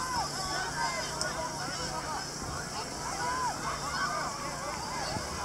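Children shout and call out across an open field.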